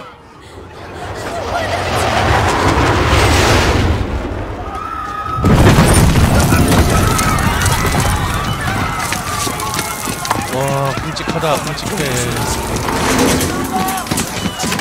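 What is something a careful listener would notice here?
A roaring rumble of explosions and collapsing debris fills the air.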